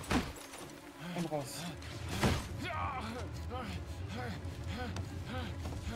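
A man groans in pain close by.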